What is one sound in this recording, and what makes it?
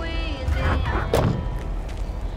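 A van door clunks open.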